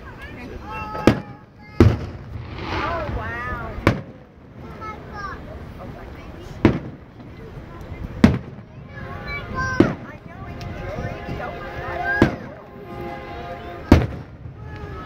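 Fireworks explode with loud booms at a distance.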